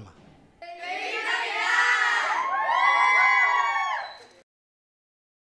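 A group of young girls shout and cheer together close by.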